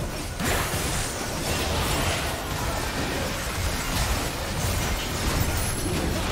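Video game spell effects whoosh and crackle during a fast battle.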